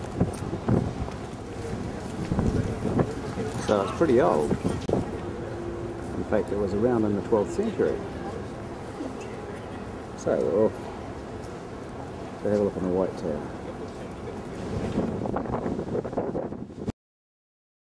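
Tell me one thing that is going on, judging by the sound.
Men and women chat nearby outdoors.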